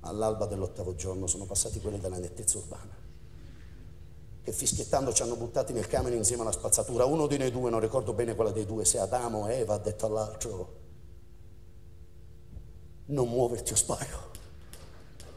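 A man speaks intensely through a stage microphone.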